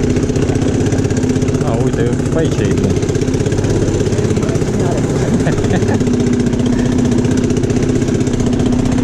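An all-terrain vehicle's engine rumbles steadily as it climbs.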